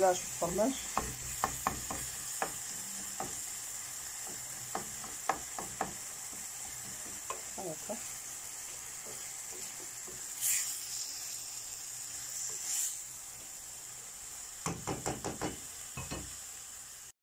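A spatula scrapes and taps against a metal pan.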